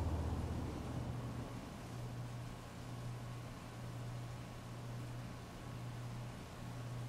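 Heavy rain pours steadily onto a wet street.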